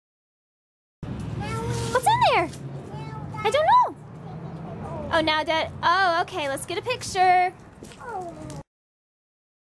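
A young child babbles and squeals close by.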